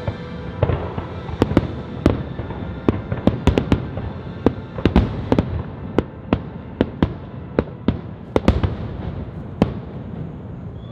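Fireworks crackle and rumble in the distance.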